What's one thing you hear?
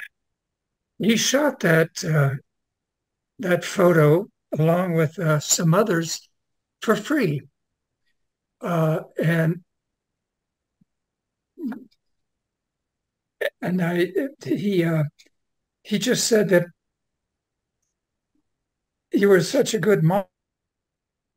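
An elderly man speaks calmly in short phrases, close to a microphone.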